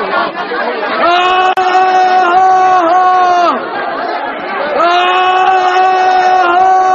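A large crowd sings together in loud, sustained voices.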